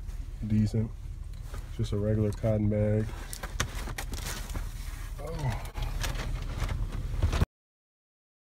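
A fabric bag rustles and crinkles as it is handled close by.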